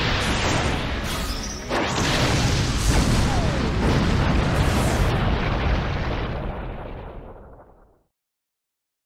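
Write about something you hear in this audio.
A loud explosion roars and rumbles, then fades away.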